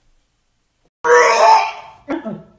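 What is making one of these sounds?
A young man shouts loudly close by.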